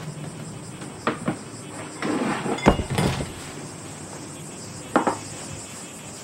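Dishes clink and knock on a low table.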